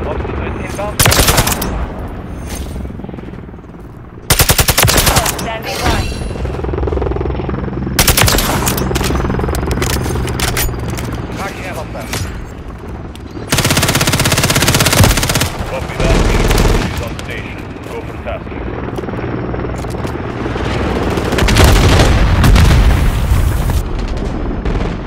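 Gunshots ring out, loud and sharp, in bursts.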